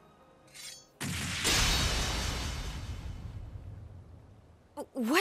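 A magical burst whooshes and roars, then slowly fades.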